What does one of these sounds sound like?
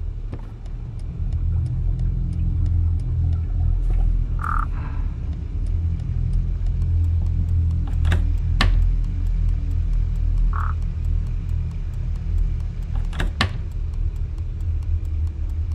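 An alarm clock ticks steadily.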